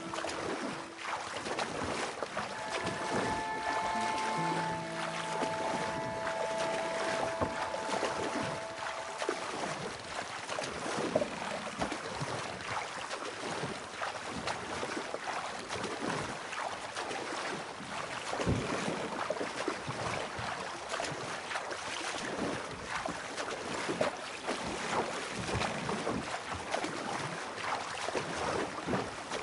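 A wooden paddle splashes and swishes through water in steady strokes.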